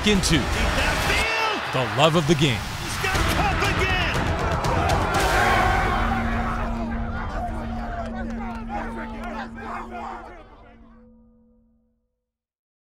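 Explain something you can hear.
A huge stadium crowd roars and cheers.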